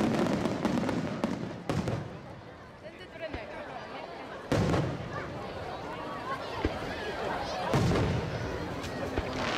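Fireworks burst with loud booming bangs.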